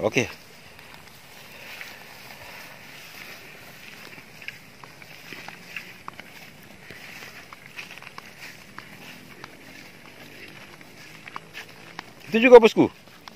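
Footsteps swish through grass along a dirt path.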